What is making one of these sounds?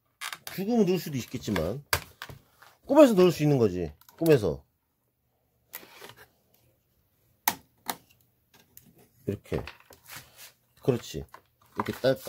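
Plastic parts click and knock as a computer fan cooler is handled.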